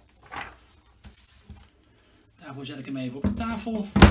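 A metal frame is set down on a table with a soft knock.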